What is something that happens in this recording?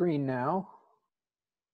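A man speaks briefly through an online call, then falls silent.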